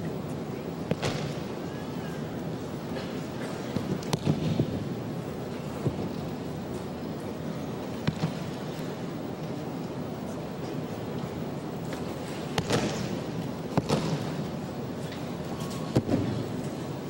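Bodies thud onto a padded mat.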